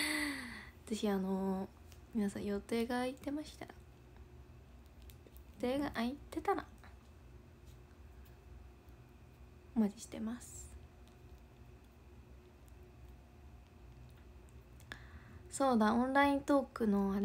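A young woman speaks softly and casually, close to the microphone, in short bursts with pauses.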